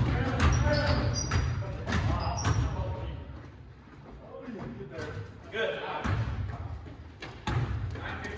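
A ball bounces on a wooden floor, echoing in a large hall.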